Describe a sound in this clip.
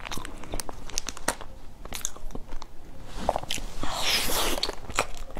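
Plastic wrapping crinkles and rustles close up.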